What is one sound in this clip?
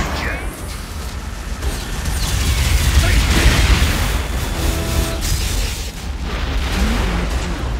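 A hovering vehicle's engine hums steadily.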